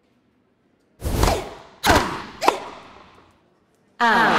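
A tennis racket strikes a ball with sharp whooshing hits.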